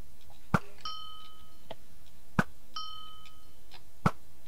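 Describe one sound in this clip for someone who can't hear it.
A high chime rings as an arrow hits.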